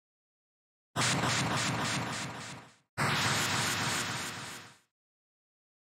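A loud shattering crash sounds twice.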